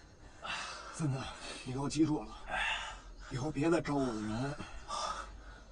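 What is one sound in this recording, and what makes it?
A young man speaks firmly and threateningly, close by.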